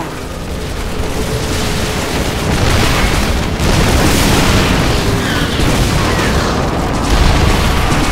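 Explosions and gunfire boom in quick bursts.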